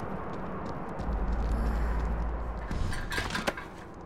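A body thuds heavily onto the ground.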